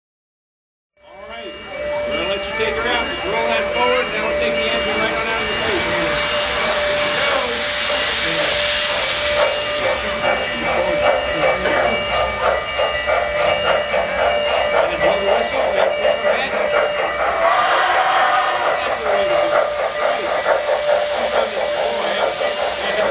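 A model train's motor hums steadily.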